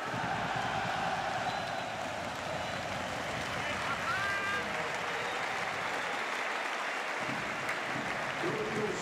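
A large crowd cheers and applauds in a stadium.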